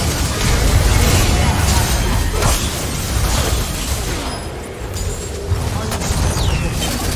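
Magic spells whoosh and crackle in a busy video game battle.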